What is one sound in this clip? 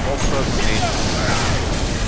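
A rifle fires a loud shot.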